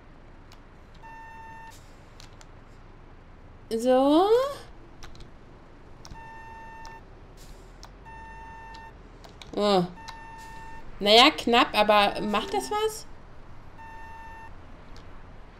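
A parking warning beeps in short steady tones.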